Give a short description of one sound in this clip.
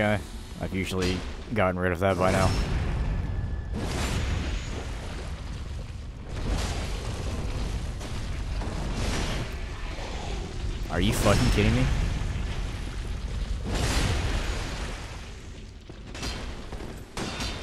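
Swords swing and clash with heavy metallic strikes.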